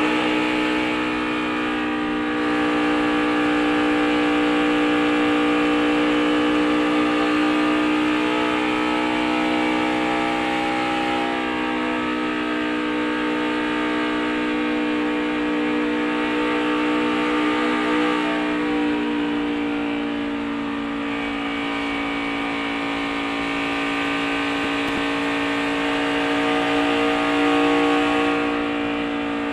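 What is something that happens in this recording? A racing car engine roars loudly at high speed, close up.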